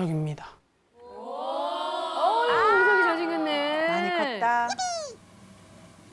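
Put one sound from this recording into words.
A woman speaks with animation and a laughing tone.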